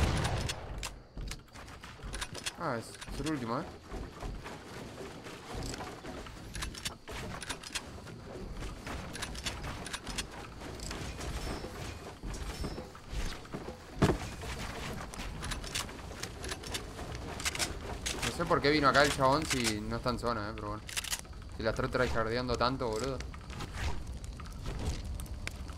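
Keyboard keys click rapidly.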